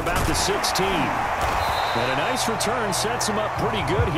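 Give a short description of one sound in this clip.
Players collide in a tackle with a thud.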